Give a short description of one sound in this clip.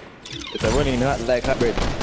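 A futuristic gun fires with a buzzing blast.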